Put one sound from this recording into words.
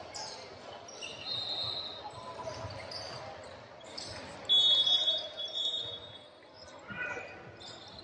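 Sneakers squeak sharply on a hard court in a large echoing hall.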